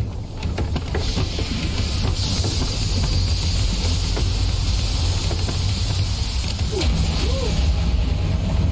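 Steam hisses steadily from a steamer.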